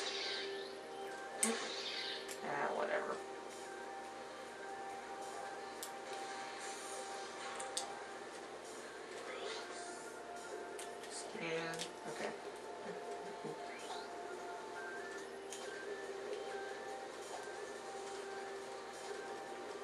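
A video game's scanner hums with a steady electronic tone over a loudspeaker.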